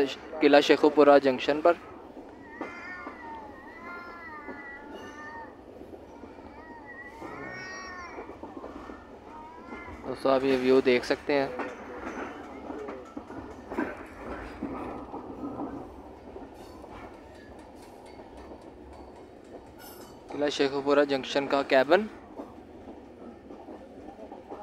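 A train rattles and rumbles steadily along the tracks.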